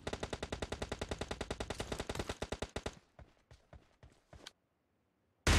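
Footsteps run quickly over grass in a game.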